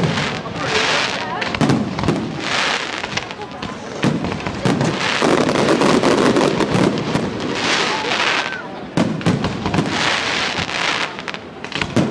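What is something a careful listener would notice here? Fireworks burst with loud bangs and booms outdoors.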